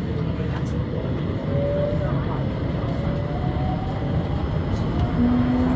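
Wheels squeal faintly on the rails.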